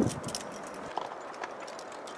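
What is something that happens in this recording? Boots scrape and crunch on loose rock.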